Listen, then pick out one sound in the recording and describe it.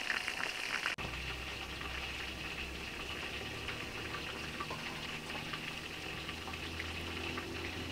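A fire crackles under a pot.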